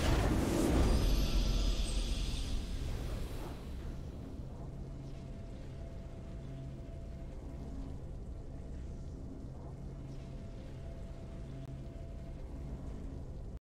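Soft, triumphant game music plays steadily.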